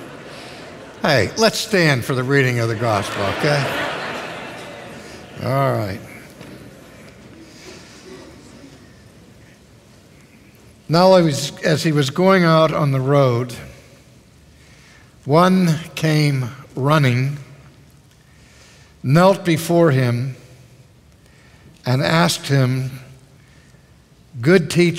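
A man speaks slowly and solemnly through a loudspeaker, echoing in the hall.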